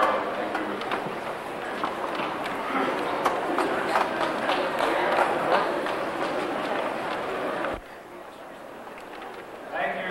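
A man speaks through a microphone and loudspeaker in a large echoing hall.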